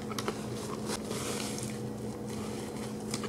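A paper napkin rustles against a woman's face.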